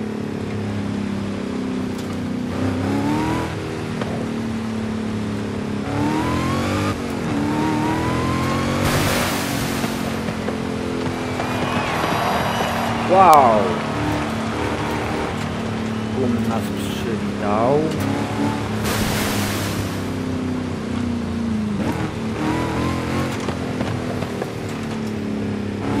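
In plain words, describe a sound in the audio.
Tyres crunch and rumble over a dirt track.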